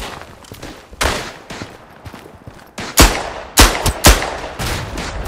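Pistol shots ring out loudly, echoing in a narrow stone tunnel.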